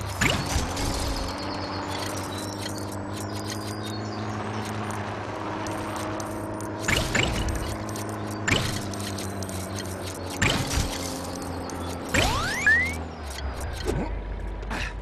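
A small vehicle engine hums steadily as it drives.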